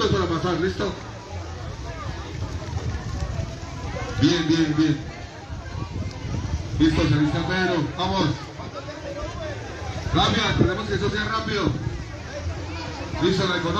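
A man shouts excitedly close by.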